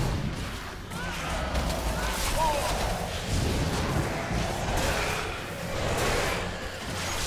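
Magic spells whoosh and crackle in a busy fantasy battle.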